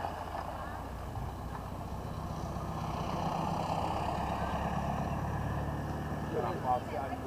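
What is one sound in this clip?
Wind rumbles across an open outdoor field.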